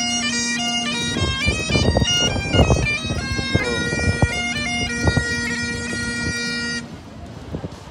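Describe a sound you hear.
Bagpipes play a lively tune outdoors.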